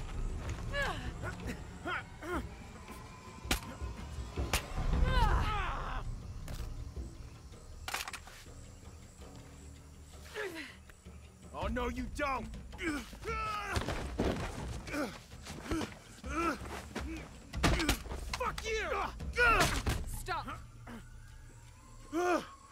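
A man grunts with strain close by.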